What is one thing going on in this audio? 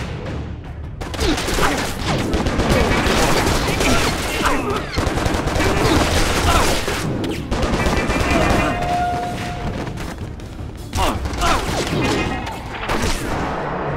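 Rapid gunfire rattles and bangs.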